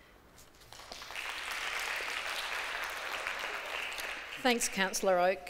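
Several women clap their hands.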